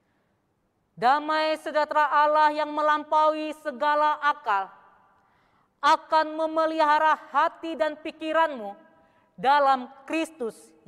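A young woman sings slowly through a microphone.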